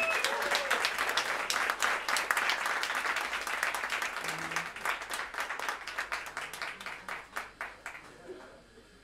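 Drums and cymbals tap a quick rhythm.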